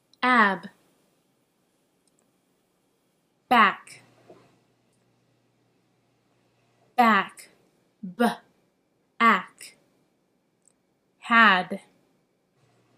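A young woman speaks in short, expressive bursts close to a microphone, with long pauses between.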